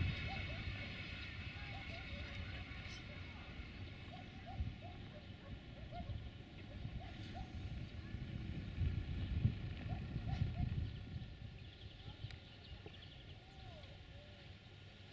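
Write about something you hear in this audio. A train rumbles along the tracks nearby.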